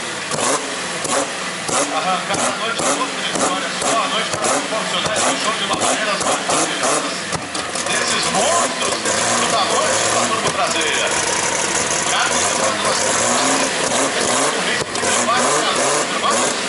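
A race car engine rumbles loudly and revs up and down.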